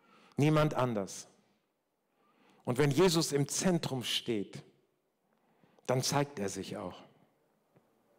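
An older man speaks calmly into a microphone, with pauses, heard through loudspeakers in a large room.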